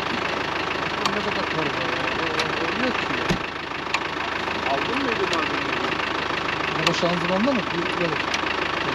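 A man talks nearby in a calm voice.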